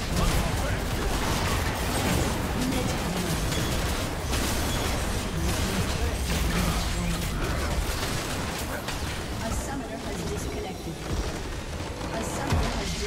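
Game spell effects crackle and clash in a busy battle.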